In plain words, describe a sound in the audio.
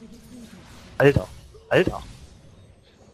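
Game spell effects burst with loud whooshing blasts.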